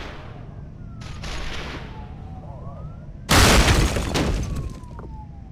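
Bullets strike a stone block with sharp cracks.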